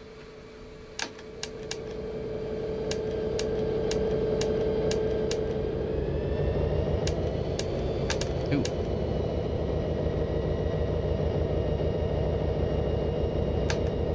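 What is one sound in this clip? Switches click in a locomotive cab.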